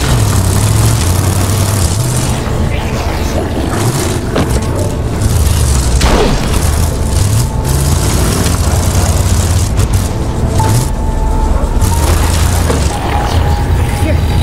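A car engine rumbles and revs over rough ground.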